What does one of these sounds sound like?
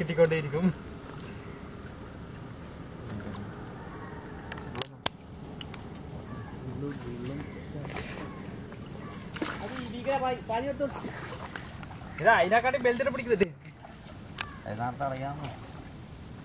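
Water splashes and sloshes around people wading.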